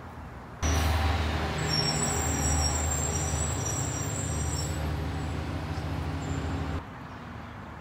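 An air conditioning unit hums steadily nearby.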